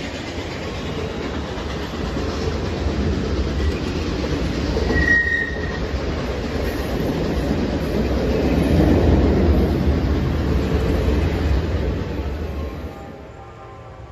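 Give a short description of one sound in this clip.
A passenger train rumbles and clatters past close by.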